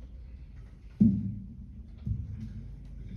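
A deep drum is struck twice and rings out in a large hall.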